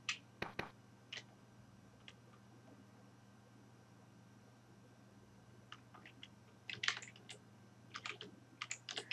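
Short soft footsteps patter now and then.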